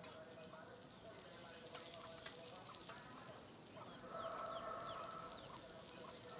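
A woman scrapes a pan with a metal spatula.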